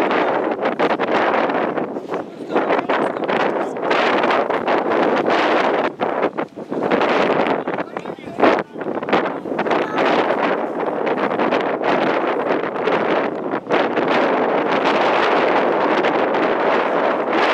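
Wind blows hard outdoors, rumbling steadily.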